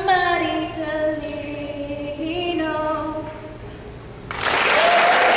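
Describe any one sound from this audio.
A young woman speaks calmly into a microphone in a large echoing hall.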